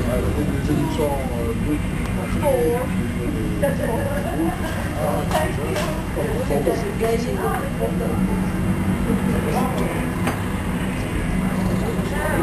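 Motorcycles ride past, engines humming.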